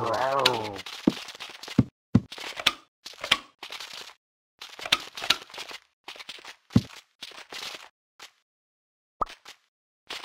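Short clicks sound as blocks snap into place.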